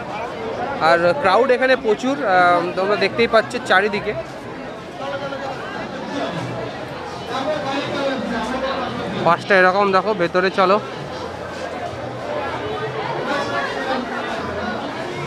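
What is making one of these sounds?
A crowd murmurs in the background outdoors.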